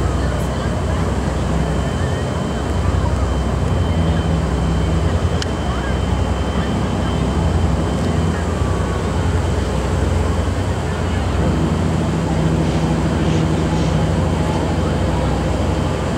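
Wind blows over the microphone outdoors.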